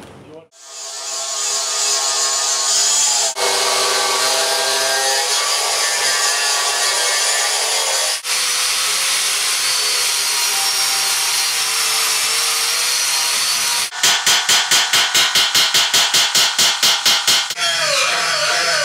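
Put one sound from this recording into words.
An angle grinder grinds steadily against metal with a high, hissing whine.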